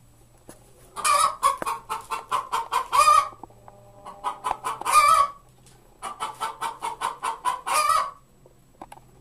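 A hen cackles loudly in rapid bursts.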